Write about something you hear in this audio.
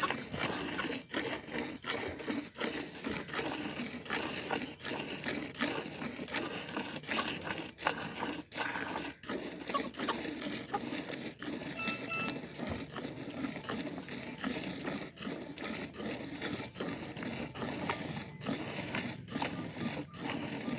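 Milk squirts in quick spurts into a metal pail.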